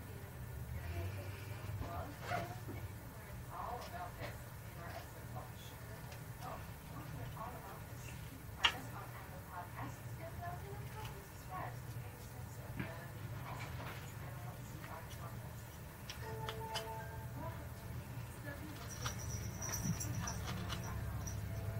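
A knife scrapes and clicks softly as it whittles a small piece of wood.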